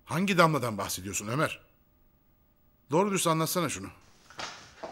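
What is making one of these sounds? A middle-aged man speaks firmly, close by.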